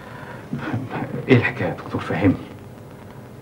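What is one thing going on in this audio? A younger man speaks in reply.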